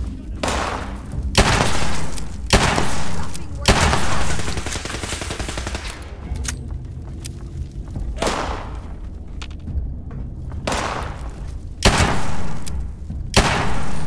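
Guns fire in loud, sharp blasts with echoing tails.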